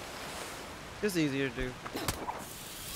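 A young man speaks briefly through a microphone, with animation.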